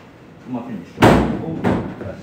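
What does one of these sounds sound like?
A loud thump sounds as a foot stamps on the floor.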